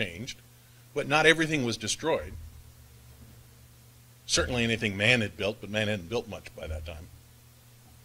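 A middle-aged man speaks with animation through a microphone in an echoing hall.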